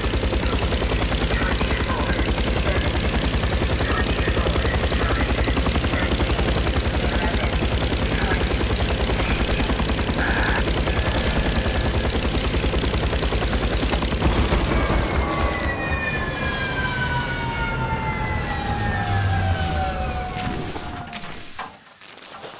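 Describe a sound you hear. A helicopter's rotor thumps rapidly and loudly.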